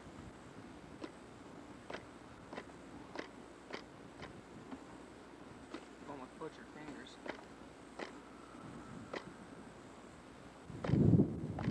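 A hand flicks a model airplane propeller with sharp clicks.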